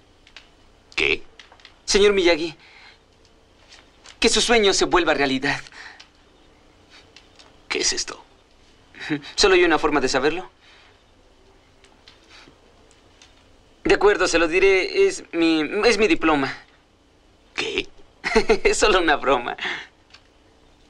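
A teenage boy speaks calmly and close by, in short phrases with pauses.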